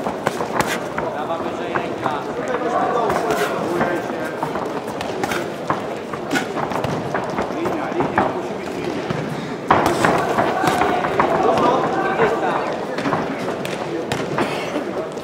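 Feet shuffle and squeak on a ring's canvas.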